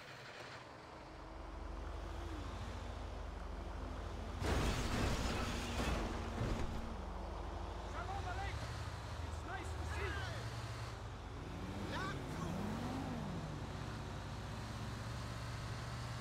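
A bus engine hums steadily as the bus drives.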